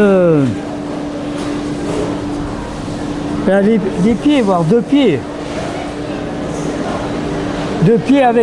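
An elderly man speaks close by in a low, expressive voice.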